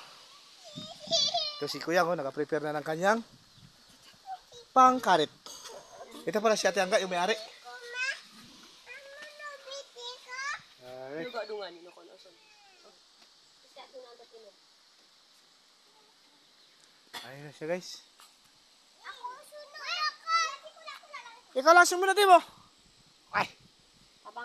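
Young children chatter and call out in high voices.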